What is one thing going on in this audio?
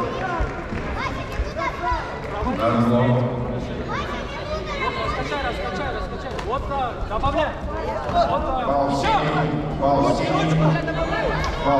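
A man nearby shouts instructions loudly.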